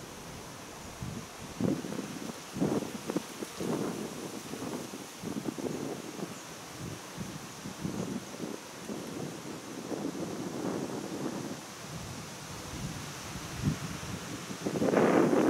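Wind blows in gusts outdoors, buffeting the microphone.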